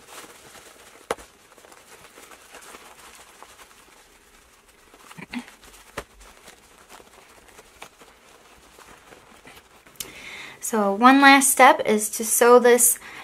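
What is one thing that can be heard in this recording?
Fabric rustles and crinkles softly as hands fold and tuck it.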